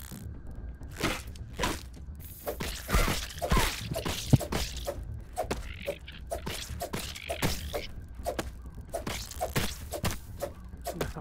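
Heavy blows strike a giant ant with dull thuds.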